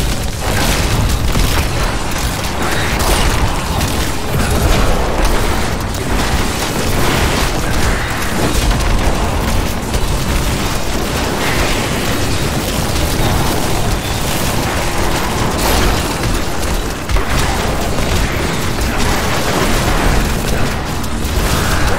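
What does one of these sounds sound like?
Game spell effects crackle and whoosh in rapid bursts.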